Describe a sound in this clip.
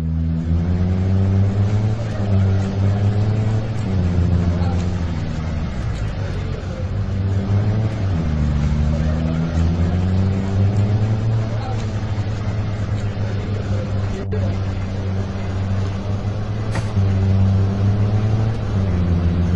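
A car engine hums steadily, rising and falling in pitch as it speeds up and slows down.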